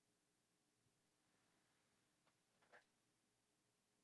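A man breathes in softly, close to a microphone.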